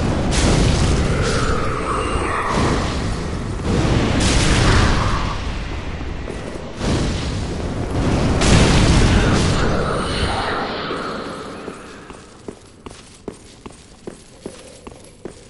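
Heavy armoured footsteps clank quickly on stone.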